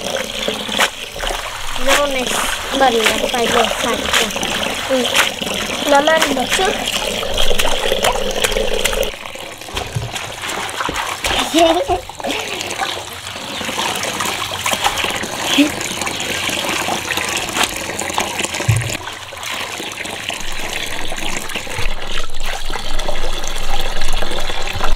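Water pours in a steady stream into a tub of water.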